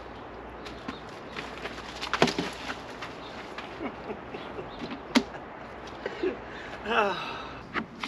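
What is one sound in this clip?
A heavy plastic sack scrapes and rustles as it is dragged over wood chips.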